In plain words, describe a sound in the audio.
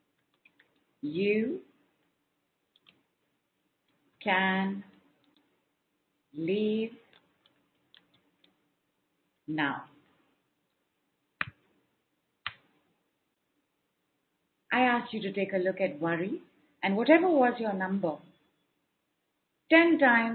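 A woman speaks calmly in short phrases with pauses, close to a microphone.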